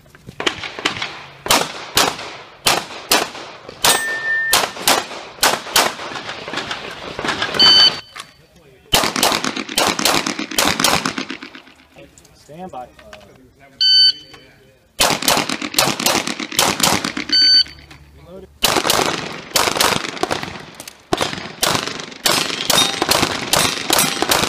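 Pistol shots ring out in rapid bursts outdoors, echoing sharply.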